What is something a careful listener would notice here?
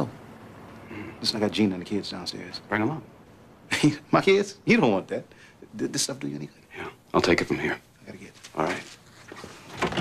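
A man speaks calmly up close.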